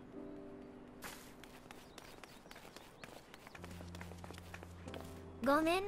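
Light footsteps patter on stone.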